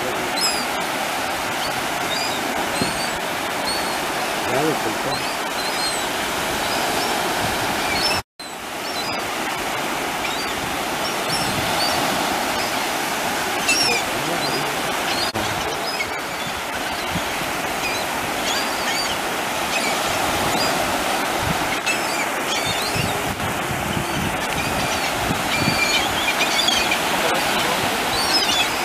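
Gulls call overhead.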